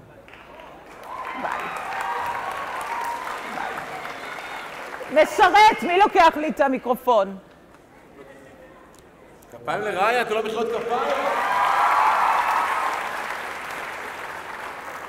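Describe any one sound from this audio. An audience cheers and claps in a large hall.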